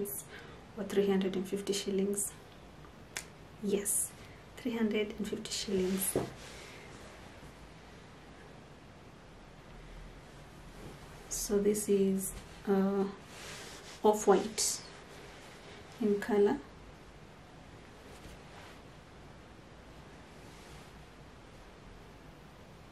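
Soft fabric rustles as it is handled.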